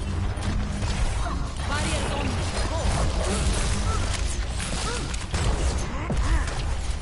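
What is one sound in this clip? Rapid gunfire blasts and clatters loudly.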